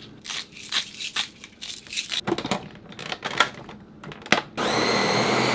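A plastic lid snaps onto a blender jar.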